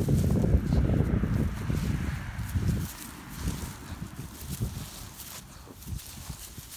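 Dry grass rustles underfoot.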